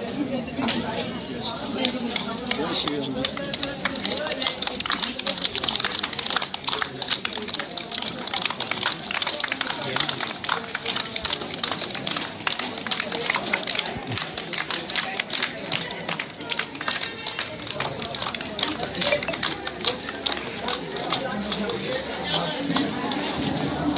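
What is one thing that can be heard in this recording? Several people clap their hands rapidly.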